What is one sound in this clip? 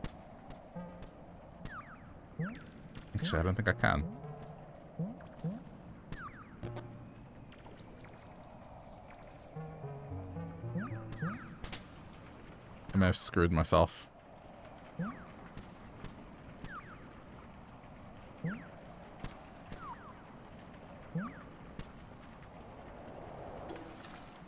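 Short, high chirping blips from a video game sound again and again.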